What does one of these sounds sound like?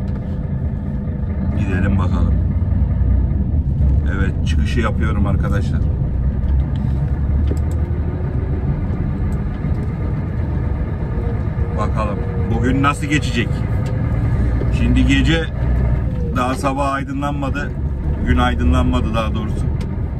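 An engine hums low and steady.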